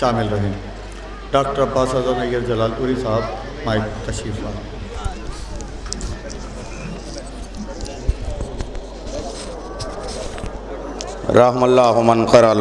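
A man chants loudly through a microphone and loudspeaker.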